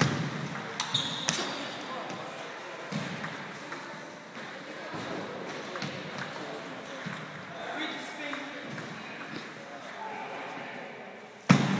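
A ping-pong ball clicks back and forth on paddles and a table in an echoing hall.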